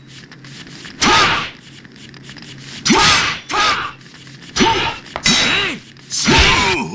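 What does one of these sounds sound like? Swords swish sharply through the air in quick bursts.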